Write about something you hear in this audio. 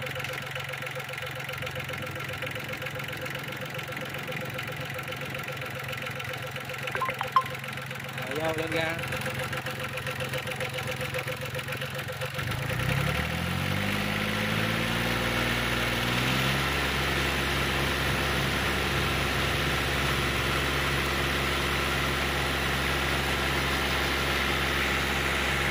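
A diesel engine idles with a steady, close rumble.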